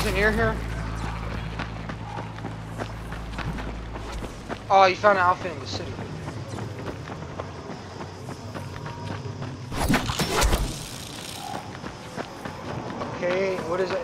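Footsteps patter quickly on a dirt path.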